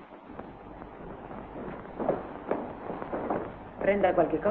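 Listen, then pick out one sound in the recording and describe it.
Footsteps click across a floor indoors.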